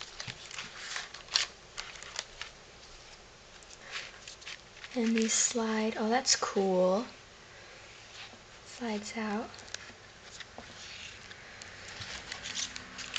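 Stiff paper and card rustle and tap as hands handle them.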